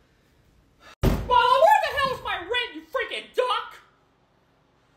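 A man shouts angrily close by.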